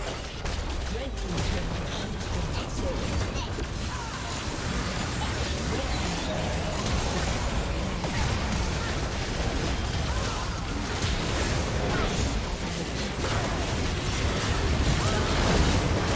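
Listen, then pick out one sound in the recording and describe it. Magic blasts, hits and explosions clash rapidly in a busy fight.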